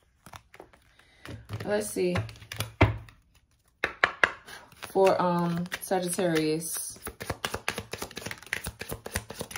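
Cards riffle and flick as they are shuffled by hand, close by.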